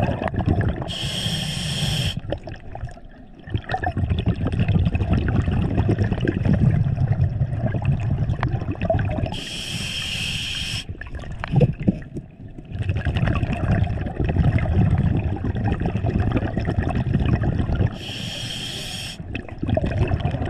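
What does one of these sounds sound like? A diver breathes in through a regulator with a sharp hiss.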